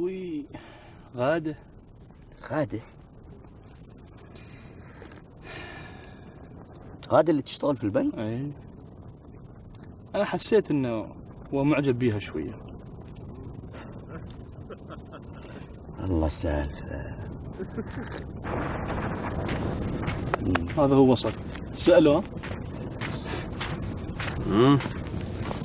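A second young man answers calmly nearby.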